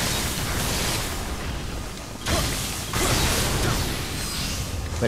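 Metal blades clash and strike in a fight.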